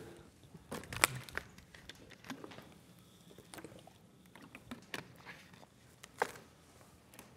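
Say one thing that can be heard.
A plastic water bottle crinkles.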